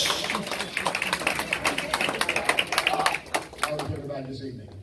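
A woman claps her hands rapidly.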